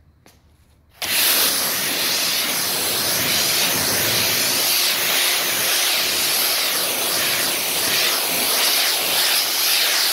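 A pressure washer sprays a loud, steady hissing jet of water.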